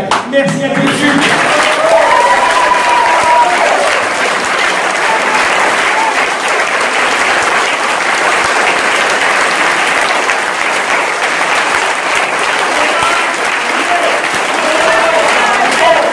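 A crowd applauds loudly and steadily.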